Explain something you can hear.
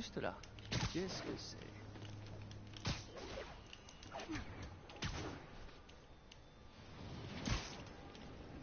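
Web lines shoot out with sharp snapping thwips.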